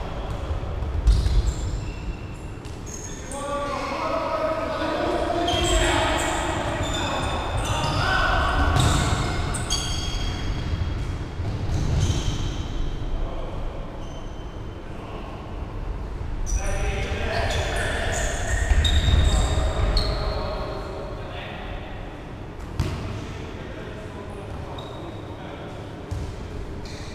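A ball thuds off the floor and walls.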